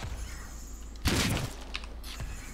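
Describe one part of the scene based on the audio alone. A gun fires a loud shot.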